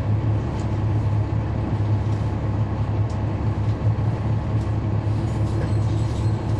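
A bus diesel engine idles with a steady low rumble close by.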